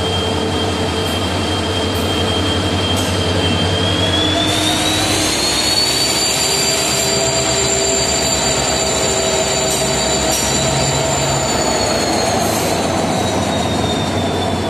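An EMD two-stroke diesel-electric locomotive idles close by with a deep throb.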